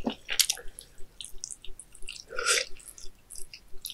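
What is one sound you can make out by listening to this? A young woman bites crunchily into grilled food.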